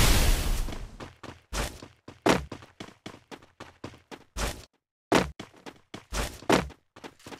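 Footsteps run quickly across a hard surface.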